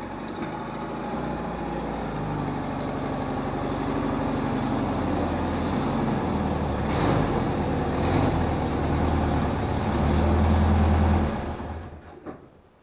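A car engine rumbles as a car drives slowly in, then shuts off.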